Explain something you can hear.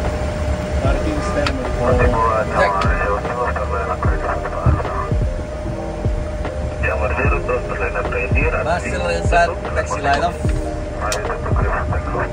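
A man answers calmly through a headset microphone.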